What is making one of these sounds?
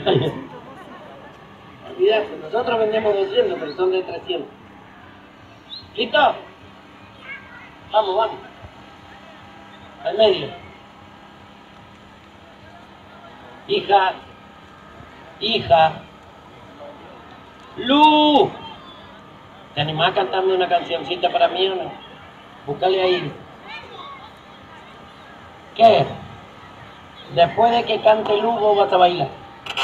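A young man speaks loudly into a microphone over loudspeakers in short bursts, outdoors.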